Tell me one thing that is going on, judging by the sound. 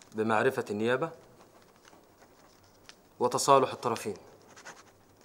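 A man speaks firmly close by, in short bursts.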